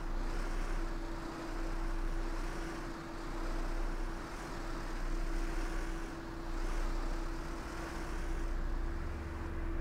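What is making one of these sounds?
A bus engine hums steadily at idle.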